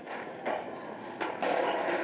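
A skateboard clatters on pavement.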